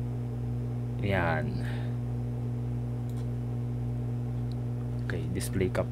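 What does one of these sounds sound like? A young man speaks briefly and calmly into a nearby microphone.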